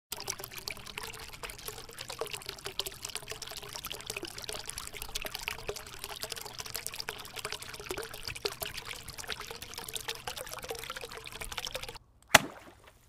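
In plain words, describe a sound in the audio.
Water splashes and swirls steadily close by.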